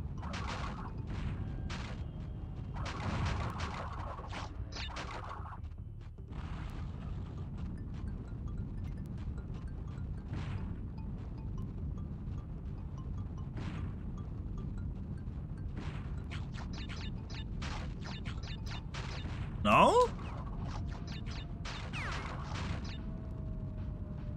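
Game music plays steadily from a television.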